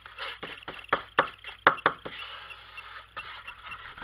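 A paintbrush brushes and taps on paper.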